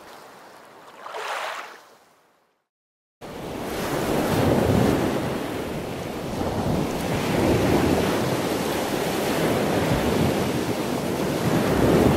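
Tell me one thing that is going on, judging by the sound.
Waves wash and break against rocks.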